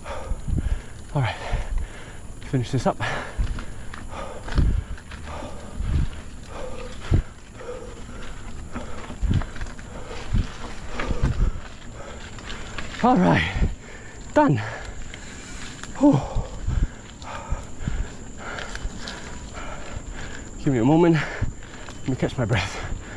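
Bicycle tyres crunch over a dirt and rock trail.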